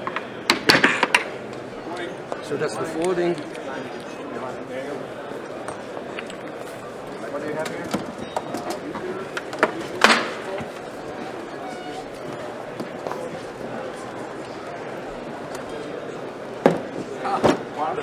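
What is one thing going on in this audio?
Metal parts clink and click as a scooter is folded.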